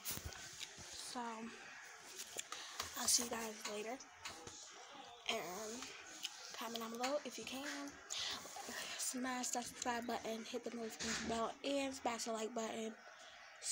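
A child talks close by with animation.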